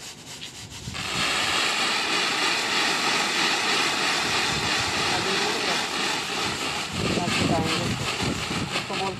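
A stream of grain pours and patters steadily.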